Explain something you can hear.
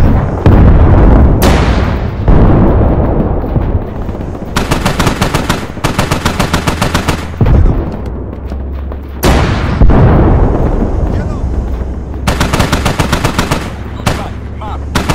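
Loud explosions boom and rumble away.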